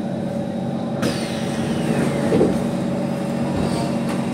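Train brakes whine softly as the train slows to a stop.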